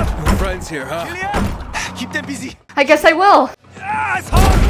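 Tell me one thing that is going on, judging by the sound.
A man shouts urgently nearby.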